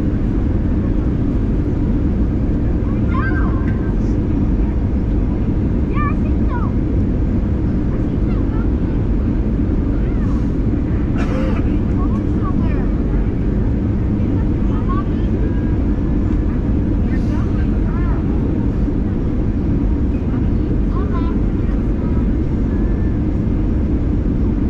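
A jet engine roars steadily in a low, deep drone.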